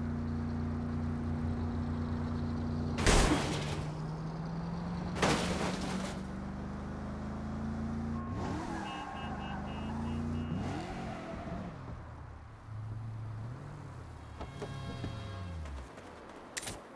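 A car engine hums steadily and revs.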